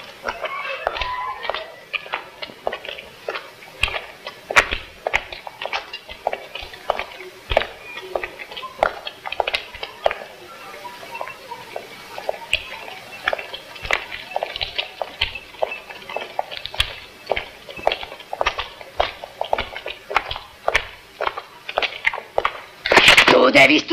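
Footsteps click on pavement at a steady walking pace.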